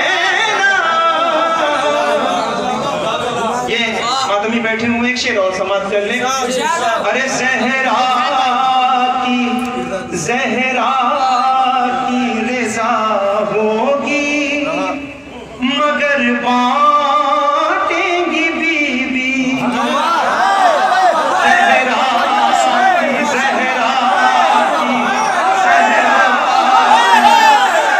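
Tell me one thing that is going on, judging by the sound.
A young man sings loudly into a microphone through loudspeakers in an echoing hall.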